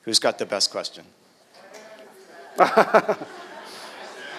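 A man speaks into a microphone in an echoing hall.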